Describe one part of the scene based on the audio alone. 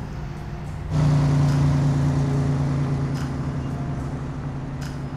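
A car engine hums as a car pulls away.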